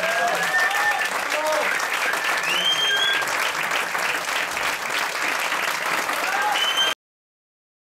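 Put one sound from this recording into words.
A large crowd claps and applauds loudly in a hall.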